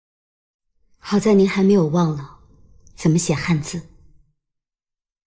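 A young woman answers calmly, close by.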